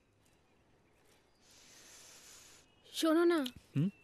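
Water pours from a jug onto plants.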